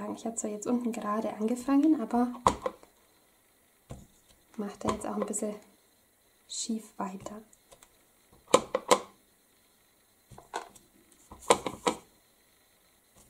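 A stamp block thumps down onto paper on a table.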